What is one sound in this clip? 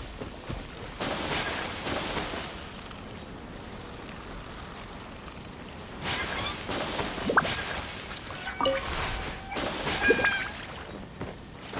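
Frost bursts with a shimmering whoosh.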